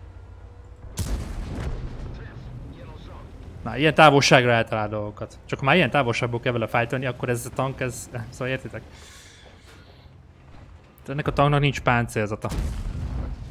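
A tank cannon fires with a booming blast.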